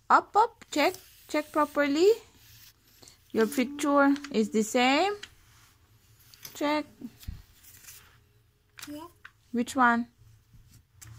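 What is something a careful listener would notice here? A young girl speaks in a high, lively voice close by.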